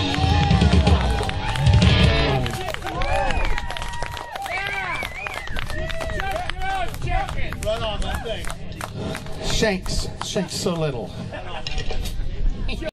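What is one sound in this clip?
A drum kit beats along.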